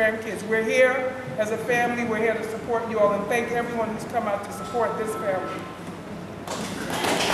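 A young woman speaks into a microphone over loudspeakers in an echoing hall.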